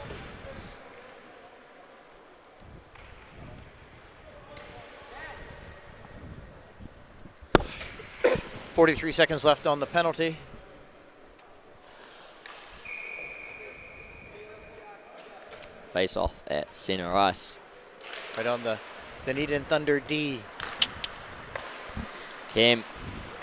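Skates scrape and glide on ice.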